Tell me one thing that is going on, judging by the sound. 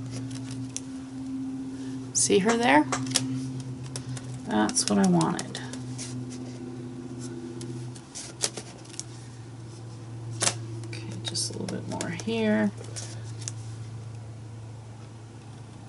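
A sheet of paper rustles as it is lifted.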